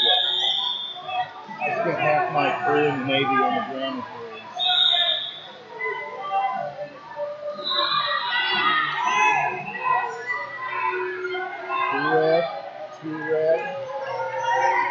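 A crowd of spectators and coaches shouts encouragement in a large echoing hall.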